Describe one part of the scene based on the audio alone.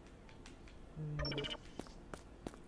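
A game menu chimes as it closes.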